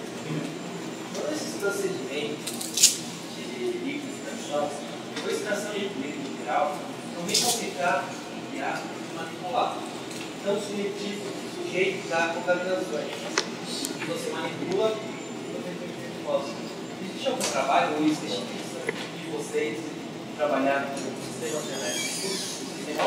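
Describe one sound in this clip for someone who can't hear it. A man lectures with animation to an audience in a room that echoes slightly.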